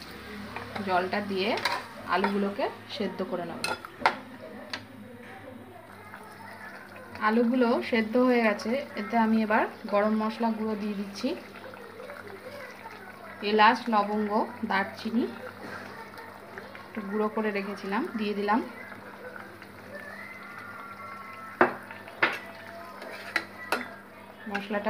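A metal spatula scrapes and clinks against a cooking pot.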